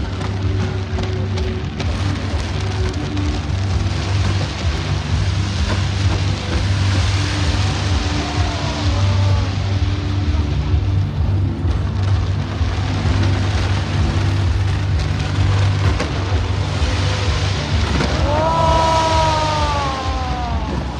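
Fireworks crackle and fizz overhead.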